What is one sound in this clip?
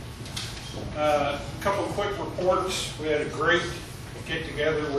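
An older man speaks.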